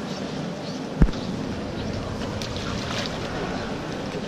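Water splashes as a swimmer pushes off and dives under.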